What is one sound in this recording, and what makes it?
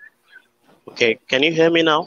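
A man talks over an online call.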